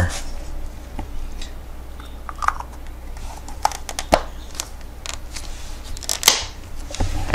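A small plastic light clicks and taps as it is handled.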